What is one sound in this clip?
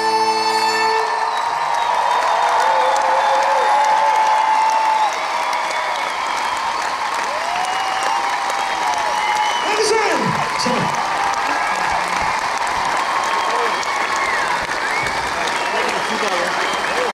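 A live band plays loudly through large loudspeakers in a wide open space.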